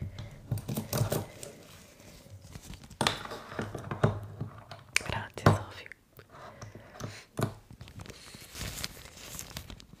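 A leather glove crinkles and rustles against a microphone.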